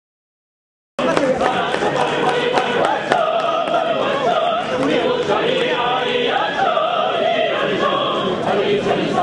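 A large crowd cheers loudly.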